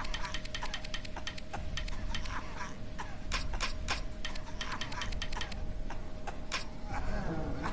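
Metal parts click and ratchet as a valve wheel turns.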